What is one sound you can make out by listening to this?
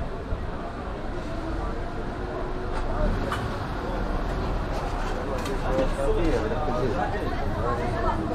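A busy street murmurs with distant chatter of passersby outdoors.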